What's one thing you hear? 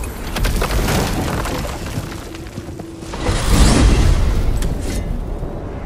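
A heavy stone door grinds and rumbles open.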